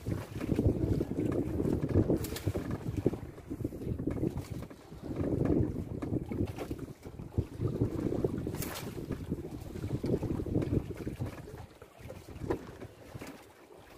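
Waves slosh and splash against the side of a boat.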